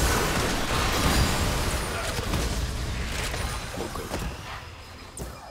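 Magic blasts and hits crash loudly in a fight, then die down.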